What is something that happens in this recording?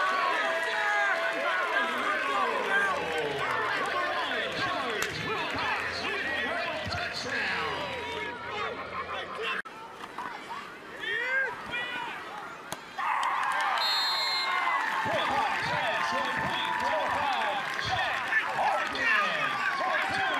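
A large crowd cheers and chatters in an open-air stadium.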